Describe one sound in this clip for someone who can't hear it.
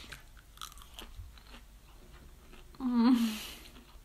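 A young woman chews food with her mouth closed.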